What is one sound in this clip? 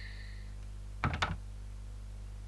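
A door handle rattles briefly.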